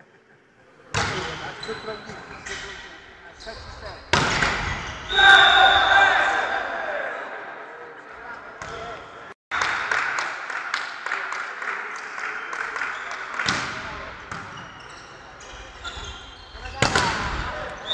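A volleyball is struck hard with loud slaps that echo through a large hall.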